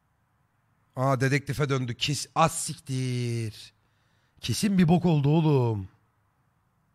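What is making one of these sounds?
A man speaks close to a microphone in short bursts.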